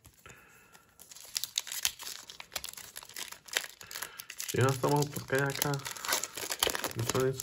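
A foil wrapper crinkles and crackles as hands tear it open.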